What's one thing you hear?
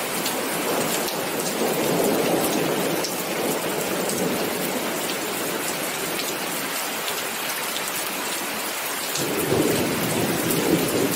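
Steady rain patters on paving stones outdoors.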